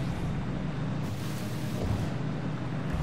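Water splashes and rushes as a vehicle breaks through the surface.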